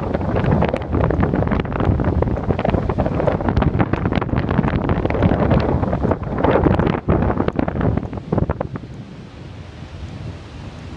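Waves crash and surge against rocks below.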